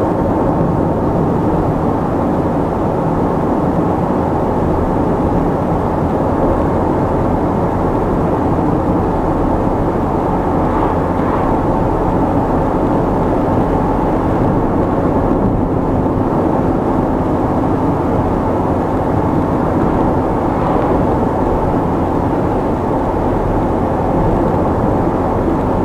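A car engine hums steadily as tyres roll on asphalt from inside the car.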